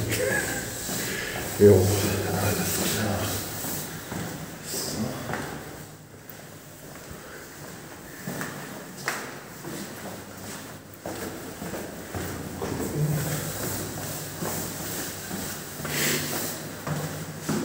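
Footsteps tap down hard stairs.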